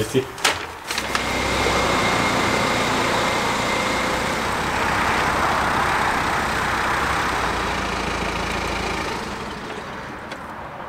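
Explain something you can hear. A car engine runs with a steady rumble.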